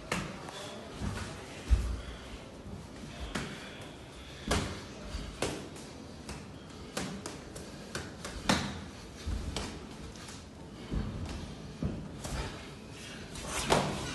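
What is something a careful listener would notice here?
Feet shuffle and thump on a canvas ring floor.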